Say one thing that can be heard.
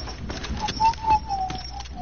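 Wooden walls clatter into place as they are built.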